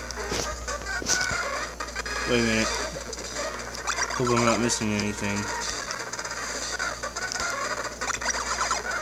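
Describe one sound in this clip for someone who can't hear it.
Electronic video game music plays steadily.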